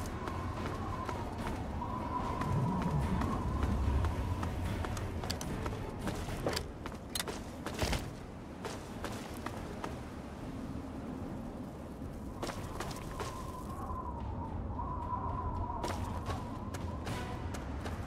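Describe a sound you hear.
Footsteps crunch over loose rubble at a steady walk.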